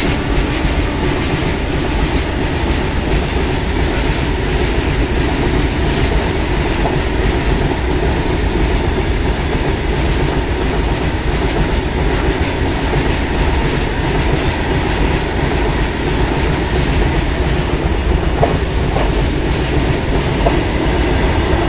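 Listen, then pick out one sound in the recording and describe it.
A freight train rumbles past close by at speed.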